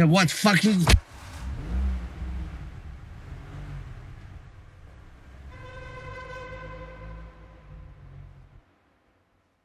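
A car engine rumbles and drives away in an echoing garage.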